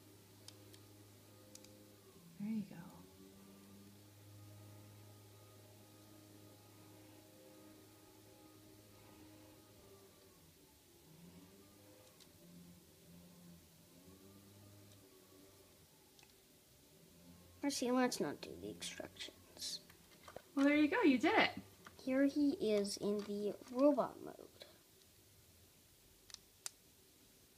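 Plastic toy bricks click and rattle in small hands.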